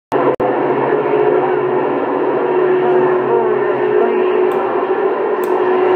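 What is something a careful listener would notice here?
A radio receiver hisses with static and a steady whining tone through its loudspeaker.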